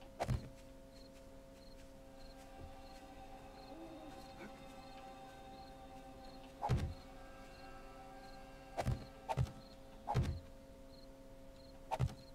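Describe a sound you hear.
Heavy blocks thud into place one after another.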